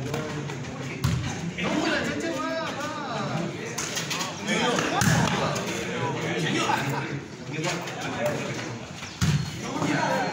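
A ball is struck with thuds.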